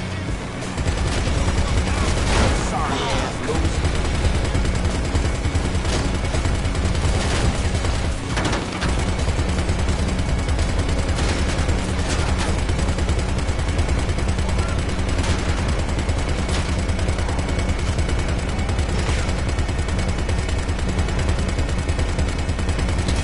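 A pickup truck engine drones steadily while driving.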